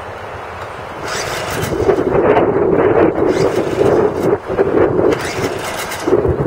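A man yanks the pull cord of a small outboard motor.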